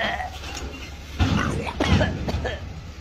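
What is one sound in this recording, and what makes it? A metal bin clatters as it is tipped into a garbage truck.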